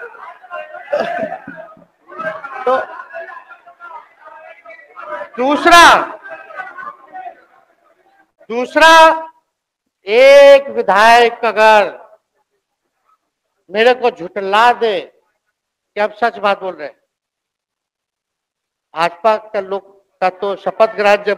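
A young man speaks forcefully into a microphone in a large echoing hall, with pauses between phrases.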